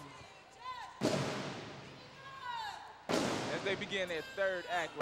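A woman speaks loudly into a microphone.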